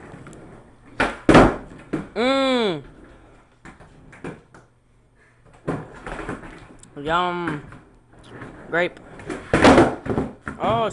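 A skateboard clacks down on a wooden floor.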